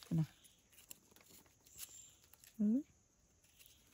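A knife cuts through a soft mushroom stem.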